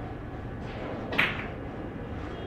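A cue tip strikes a billiard ball with a sharp click.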